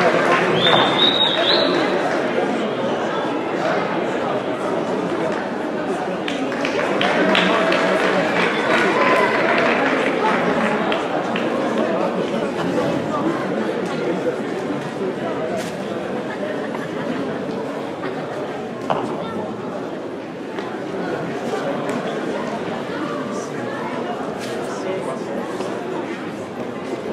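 A crowd chatters and murmurs in a large echoing hall.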